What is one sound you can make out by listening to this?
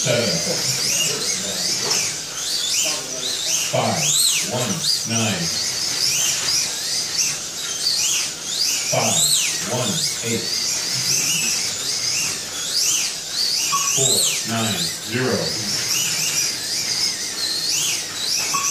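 Small electric racing cars whine around a track, their pitch rising and falling as they speed up and slow down.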